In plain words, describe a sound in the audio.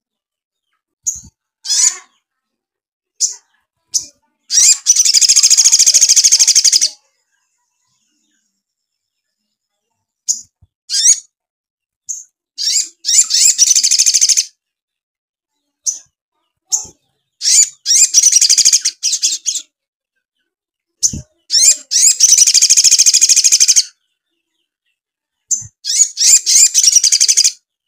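A small bird sings close by in fast, high trilling bursts with pauses between them.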